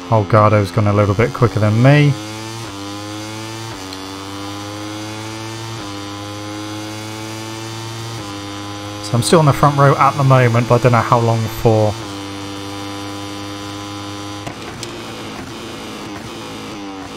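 A motorcycle engine whines at high revs, climbing in pitch and dropping with each gear change.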